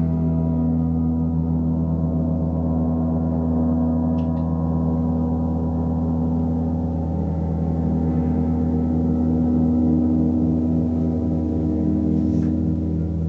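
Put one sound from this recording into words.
Large gongs hum and shimmer in a deep, steady, swelling drone.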